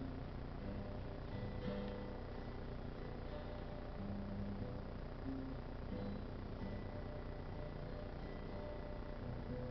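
A man strums an acoustic guitar.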